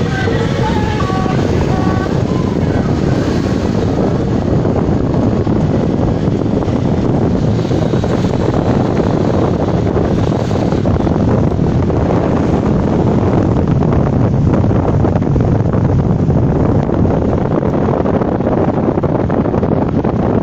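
A car engine hums and tyres roar steadily on the road from inside a moving car.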